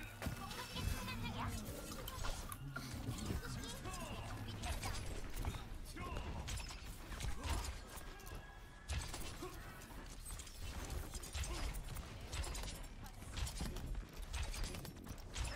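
Gunfire from a video game crackles in quick bursts.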